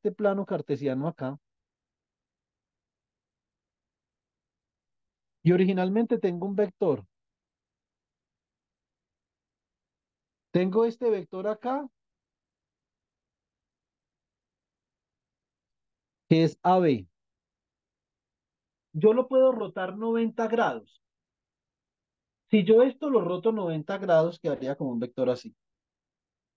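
A woman speaks calmly over an online call, in short bursts with long pauses.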